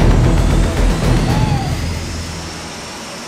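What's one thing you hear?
Water sprays hard from a hose.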